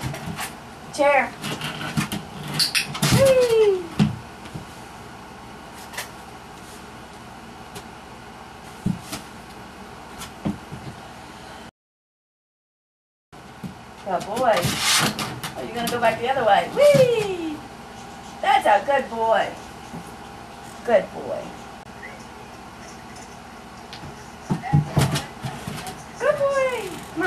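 A plastic rocking chair rocks and thumps on the floor.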